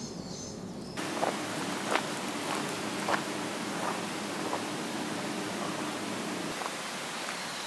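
Footsteps crunch on dry leaves on a path.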